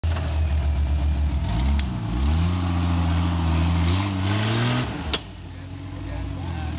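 An off-road vehicle's engine roars loudly and revs up, then drops off.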